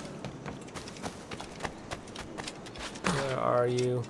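Footsteps patter quickly over hard ground.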